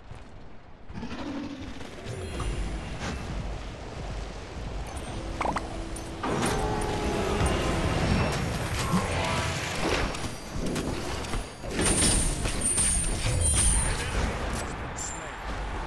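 Game spells and weapons clash and burst with loud impacts.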